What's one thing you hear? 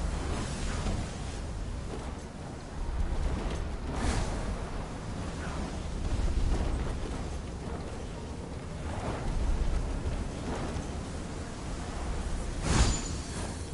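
Wings whoosh as a winged figure glides through the air.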